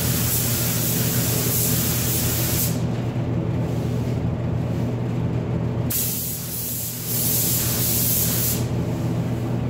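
A spray gun hisses in short loud bursts.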